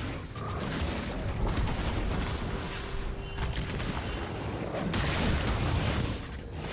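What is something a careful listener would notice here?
Magic spell effects whoosh and crackle in a video game fight.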